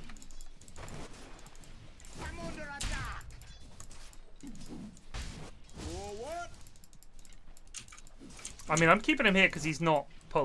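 Video game combat effects clash and whoosh.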